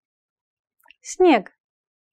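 A young woman speaks a single word clearly, close to a microphone.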